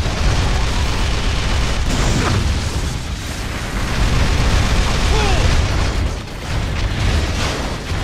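Metal clangs as a sword strikes a giant machine.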